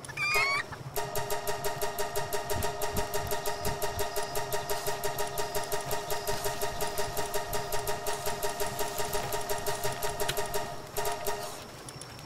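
A game menu makes rapid, even ticking beeps.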